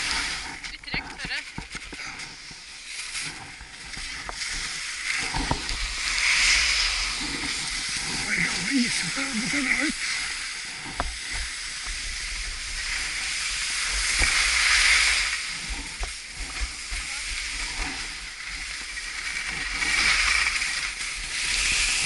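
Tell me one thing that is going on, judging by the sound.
Wind rushes past close by, outdoors.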